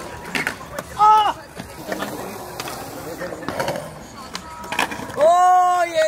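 Skateboard wheels roll and clack on concrete.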